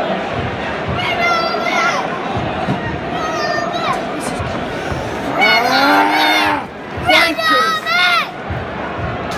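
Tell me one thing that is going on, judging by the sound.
Men in the crowd chant and sing loudly.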